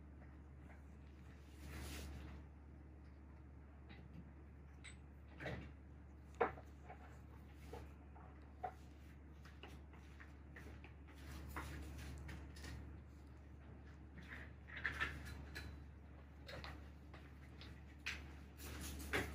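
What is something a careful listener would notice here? Rubber gloves rub and squeak against skin close by.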